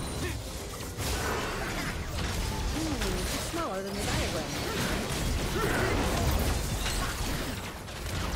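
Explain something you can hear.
Magic blasts and clashing weapons crackle in a fast fantasy battle.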